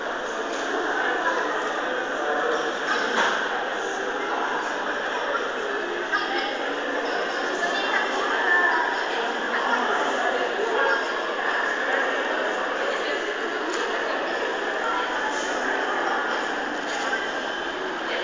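A crowd of shoppers chatters in a large echoing hall.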